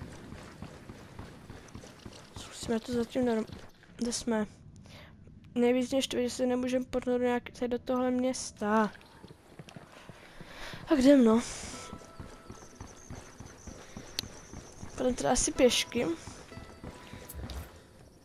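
Footsteps run on a paved road.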